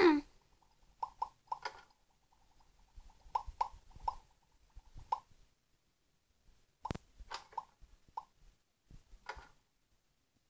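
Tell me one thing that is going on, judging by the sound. Bubbles pop with soft, quick blips.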